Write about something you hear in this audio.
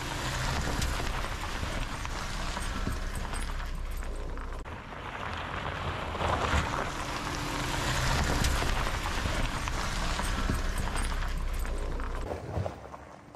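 Tyres crunch over gravel and stones.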